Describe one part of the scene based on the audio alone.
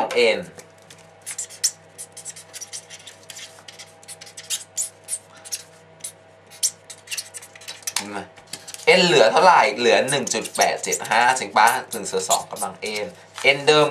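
A marker pen squeaks and scratches across paper.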